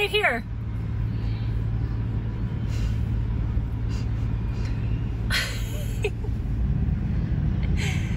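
Traffic hums along a road nearby.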